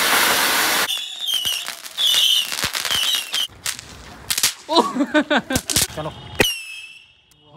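Firecrackers pop and crackle.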